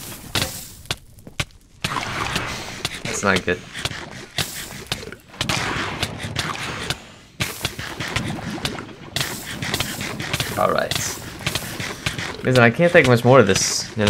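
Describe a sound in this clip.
Lava bubbles and pops.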